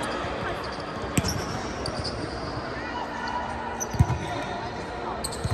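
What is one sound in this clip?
Young players call out to each other.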